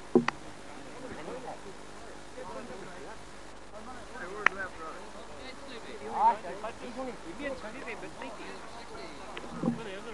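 A man talks and calls out outdoors.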